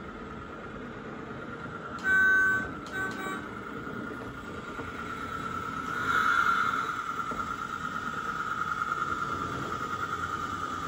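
A small electric train motor whines steadily.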